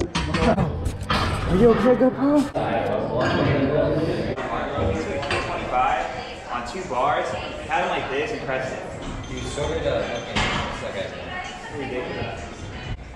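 Young men talk and call out encouragement nearby in a room with a slight echo.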